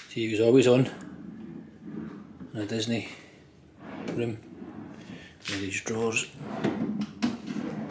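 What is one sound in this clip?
A wooden drawer slides open and shut.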